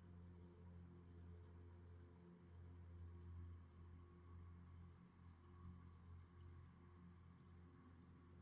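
A man hums a low, steady drone close by, pausing briefly for breath.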